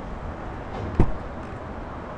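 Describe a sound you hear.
A car door thumps shut.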